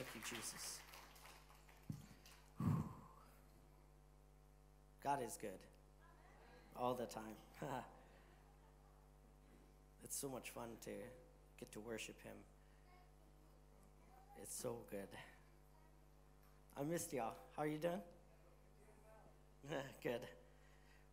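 A man speaks calmly into a microphone, in short phrases with pauses, heard through loudspeakers in a hall.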